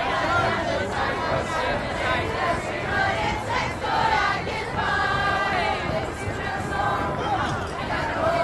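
A group of people sing together outdoors.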